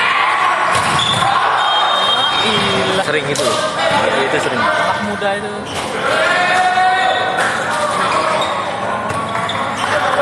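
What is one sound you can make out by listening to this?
A volleyball is struck hard in a large echoing hall.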